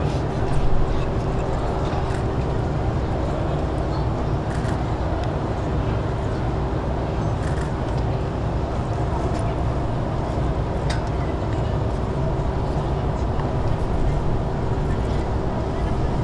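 A large crowd cheers steadily outdoors.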